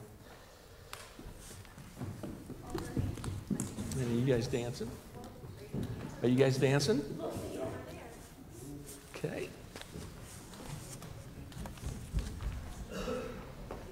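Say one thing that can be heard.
Children chatter and move about.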